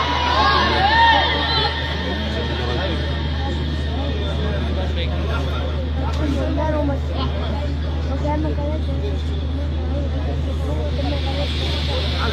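A man chants melodically into a microphone through loudspeakers.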